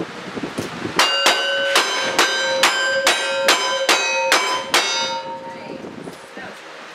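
Steel targets ring out with a metallic clang after each hit.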